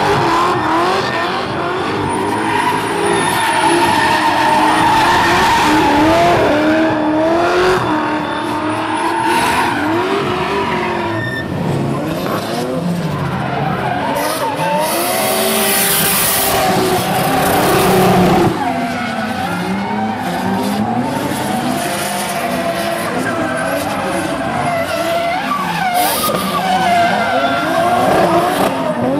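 Drift car engines rev hard, rising and falling in pitch.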